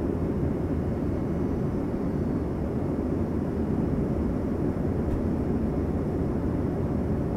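An aircraft's engines drone with a steady low roar inside the cabin.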